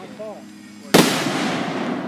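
A firework bursts overhead with a loud, sharp bang.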